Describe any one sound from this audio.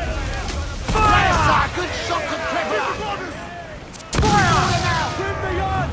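Cannons boom loudly.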